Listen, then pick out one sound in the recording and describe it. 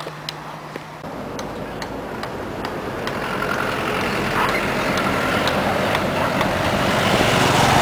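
A motorcycle engine approaches and grows louder.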